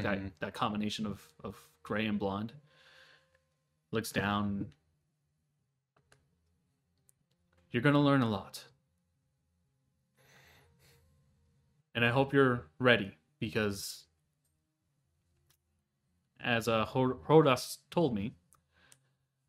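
A man speaks calmly through a microphone in short bursts with pauses.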